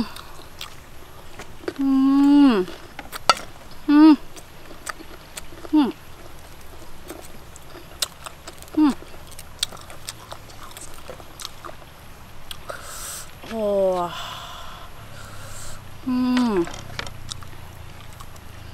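A woman crunches and chews on raw garlic.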